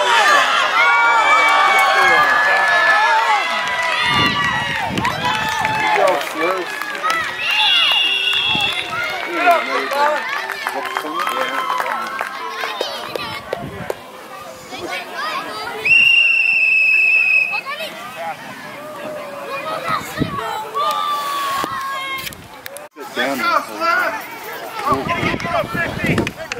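Adult spectators cheer and shout nearby outdoors.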